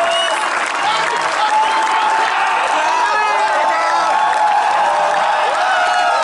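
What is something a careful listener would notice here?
A crowd claps along in rhythm.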